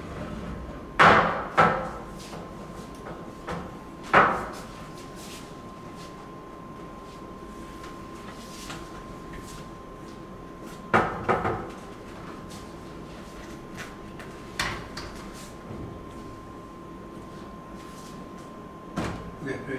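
Heavy wooden frames knock and thud as a man shifts them.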